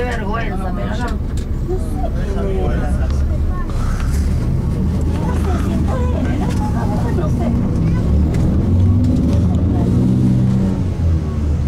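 A crowd of people chatters in the distance.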